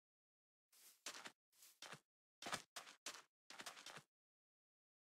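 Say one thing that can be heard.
Footsteps fall softly on grass and sand.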